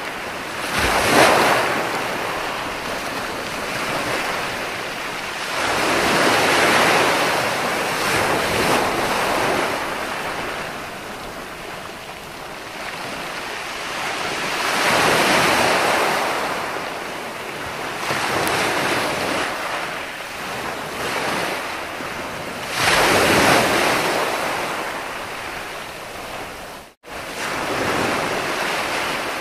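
Ocean waves crash and wash up onto the shore in slow swells.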